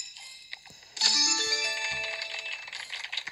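A bright game fanfare plays with rising chimes.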